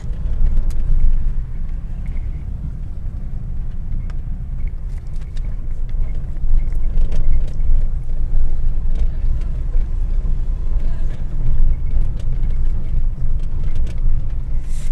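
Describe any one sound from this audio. A car engine hums low and steady as the car drives along a road.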